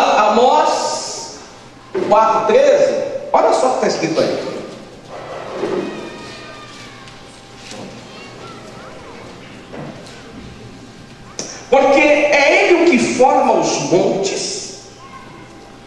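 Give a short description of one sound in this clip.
A young man speaks with animation through a microphone and loudspeaker in an echoing room.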